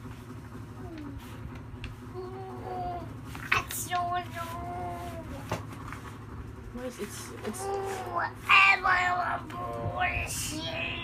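A young child babbles and talks close by.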